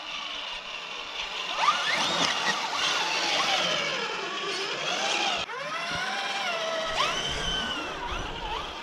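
Small electric motors whine, rising and falling in pitch.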